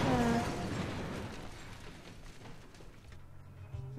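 A car crashes with a loud crunch, and the noise slowly fades.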